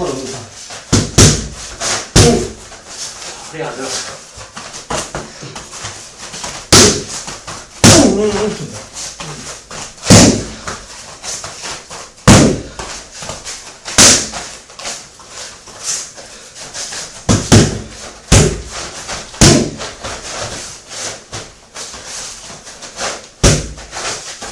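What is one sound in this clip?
Punches and kicks thud sharply against padded mitts, again and again.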